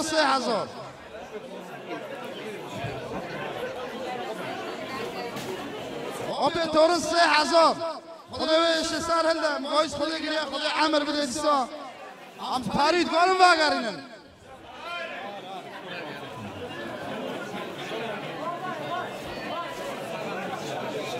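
Men chatter in the background.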